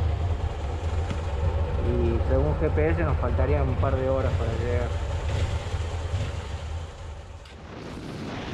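Motorcycle engines idle close by with a low rumble.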